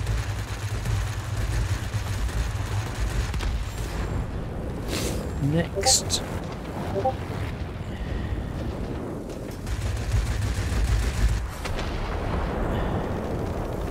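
Machine guns fire in short rapid bursts.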